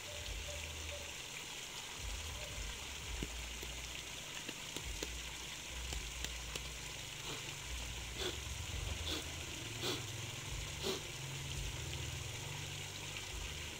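Water splashes as men wade through a stream.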